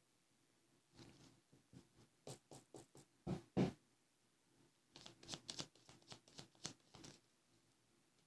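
Playing cards shuffle and riffle softly close to a microphone.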